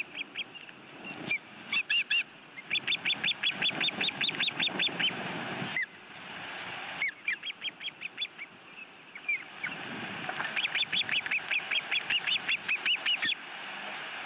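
Ospreys give rapid, high-pitched chirping calls in quick bursts.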